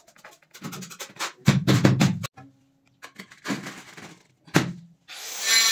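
Ceramic tiles tap and knock as they are pressed into place on a floor.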